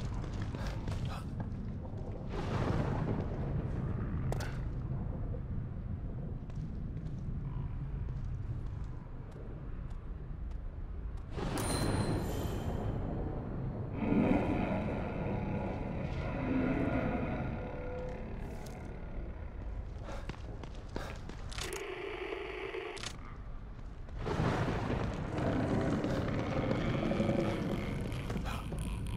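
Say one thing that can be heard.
Footsteps crunch slowly over gravel and debris.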